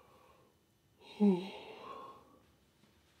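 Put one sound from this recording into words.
A young man gasps in surprise.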